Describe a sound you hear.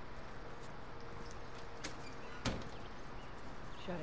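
A heavy metal door swings open.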